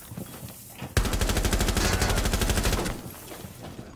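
An explosion booms with a loud, lingering roar.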